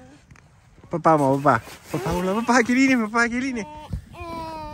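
A young child laughs and squeals close by.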